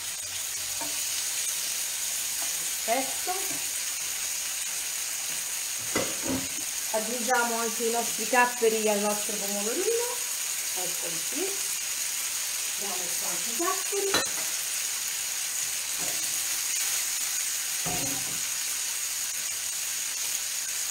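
Food sizzles steadily in frying pans.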